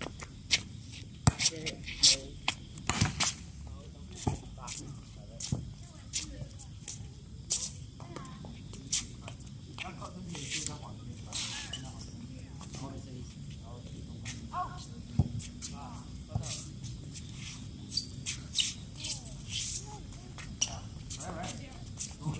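Sneakers squeak and scuff on a hard court.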